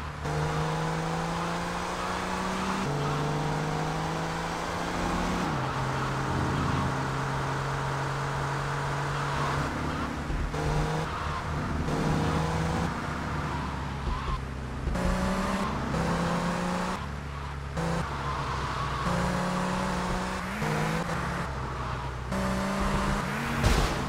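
A car engine hums and revs steadily as the car drives along.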